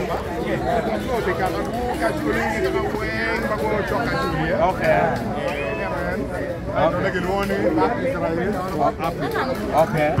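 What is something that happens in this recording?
A man speaks with animation among the crowd.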